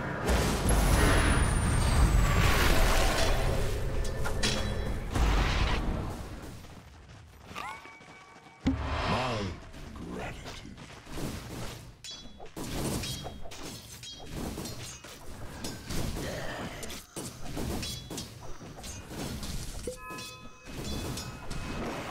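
Magical spell effects whoosh and crackle during a fight.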